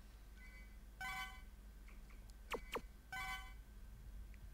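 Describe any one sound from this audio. Short electronic menu blips chime several times.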